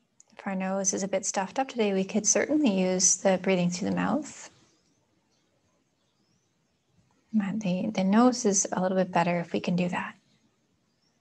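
A young woman speaks calmly and softly, close to a microphone.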